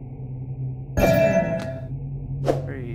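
A bright, ringing chime sounds once.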